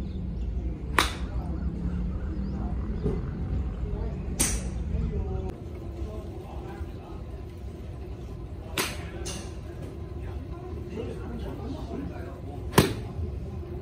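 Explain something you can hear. A golf club sharply strikes a ball.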